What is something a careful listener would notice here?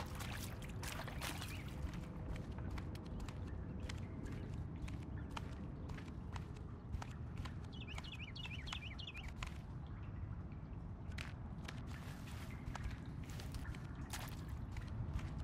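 Footsteps crunch quickly over rocky ground.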